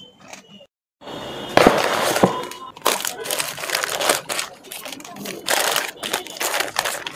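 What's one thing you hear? A paper wrapper crackles as it is unwrapped.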